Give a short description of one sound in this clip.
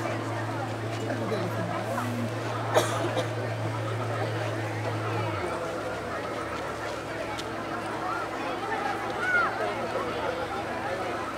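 Water rushes and splashes around a boat.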